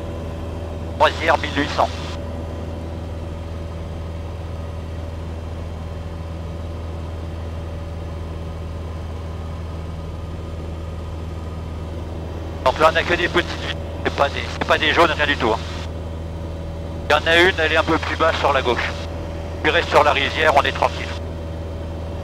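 An elderly man speaks calmly through a headset intercom.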